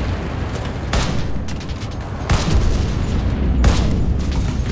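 A machine gun fires short bursts.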